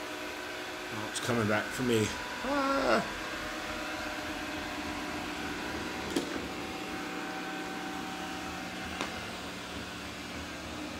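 A robot vacuum hums and whirs steadily as it moves across the floor.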